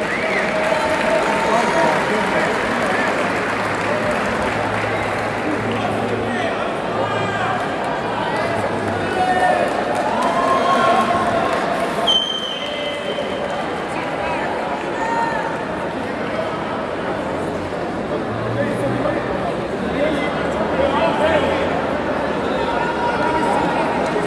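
Spectators shout and whistle loudly at times.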